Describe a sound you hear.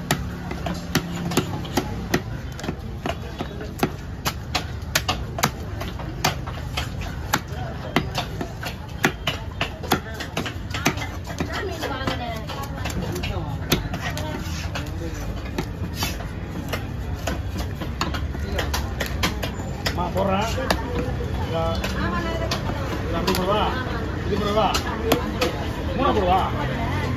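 A heavy blade chops down onto a wooden block with sharp knocks.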